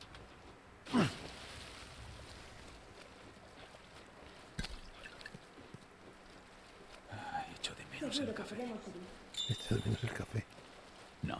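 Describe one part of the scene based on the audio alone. A man wades through shallow water with soft splashes.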